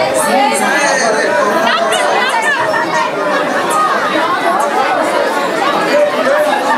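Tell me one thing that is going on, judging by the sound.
A crowd of women and girls chatters loudly all around.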